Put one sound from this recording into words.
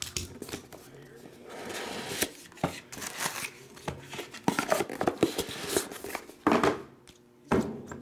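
Cardboard and plastic card cases rustle and clatter in hands close by.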